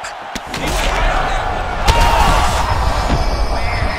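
A kick lands with a sharp thud.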